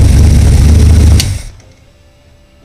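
An engine cuts off abruptly into quiet.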